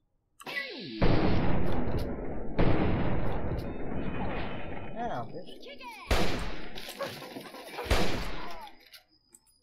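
Gunshots blast loudly in rapid bursts, with heavy echoing booms.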